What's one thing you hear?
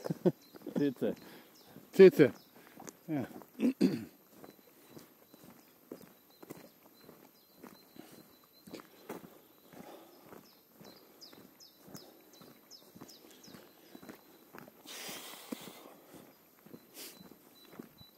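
Footsteps tap steadily on a paved path outdoors.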